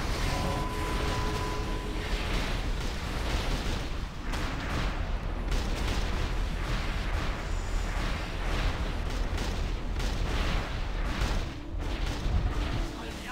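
Spell effects whoosh and crackle in a busy game battle.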